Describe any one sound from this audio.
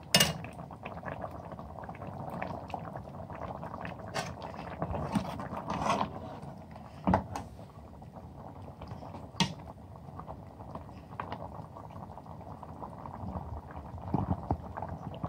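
A metal ladle stirs a thick curry.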